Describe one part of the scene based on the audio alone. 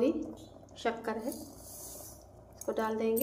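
Sugar pours in a hissing stream into liquid in a steel pot.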